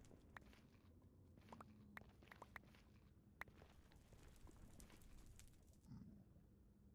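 Stone blocks crack and crumble under repeated quick strikes.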